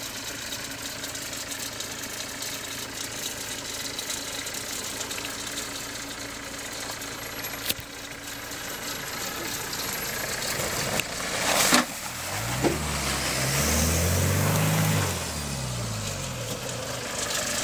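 An engine rumbles as an off-road vehicle climbs a muddy track and passes close by.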